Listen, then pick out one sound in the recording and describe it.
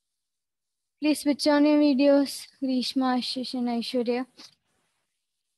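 A young woman speaks clearly into a close headset microphone.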